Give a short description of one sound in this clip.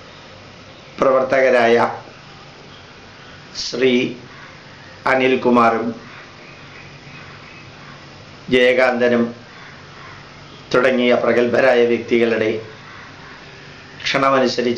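A middle-aged man speaks calmly and slowly, with pauses between phrases.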